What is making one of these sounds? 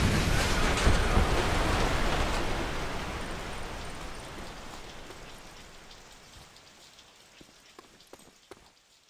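A loud roar of a blast fades away slowly.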